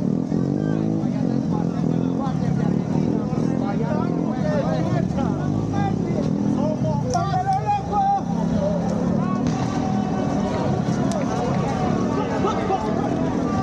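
A large crowd of men and women chatters and cheers loudly outdoors.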